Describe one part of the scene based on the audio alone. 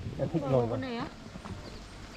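A young boy speaks in a high voice close by.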